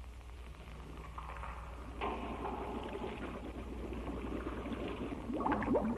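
Air bubbles gurgle from a diver's breathing regulator underwater.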